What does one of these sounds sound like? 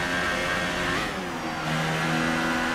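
A racing car engine drops in pitch as the car brakes and downshifts.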